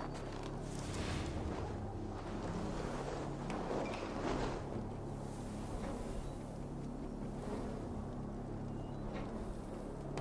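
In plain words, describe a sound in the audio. Leaves rustle as someone pushes through a bush.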